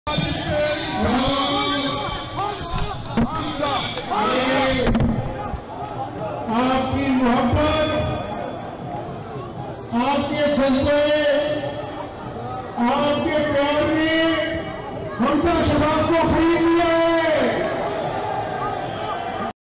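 A large crowd chants and shouts back in unison.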